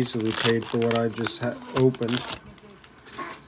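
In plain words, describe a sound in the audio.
A foil wrapper crinkles in someone's hands.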